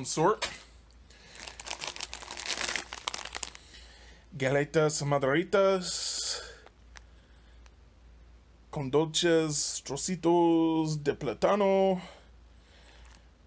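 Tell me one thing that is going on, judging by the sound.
A plastic snack bag crinkles as it is handled.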